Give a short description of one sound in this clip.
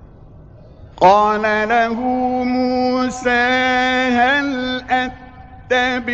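A man chants in a long, drawn-out melodic voice.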